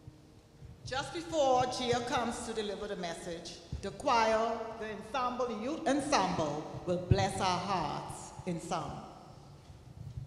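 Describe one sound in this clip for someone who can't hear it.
A group of women sing together in a large echoing hall.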